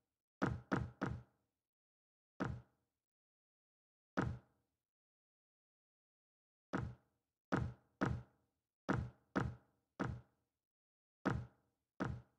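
Footsteps thud unevenly on a wooden floor.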